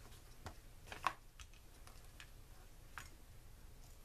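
Small objects tap lightly on a hard table.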